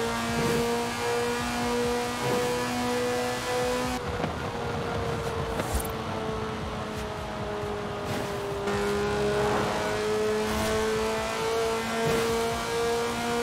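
A racing car engine roars at high speed, dipping in pitch and then rising again.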